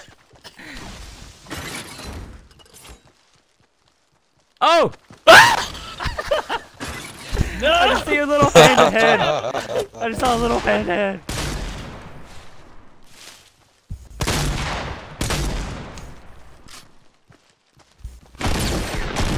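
Footsteps rustle through tall dry stalks.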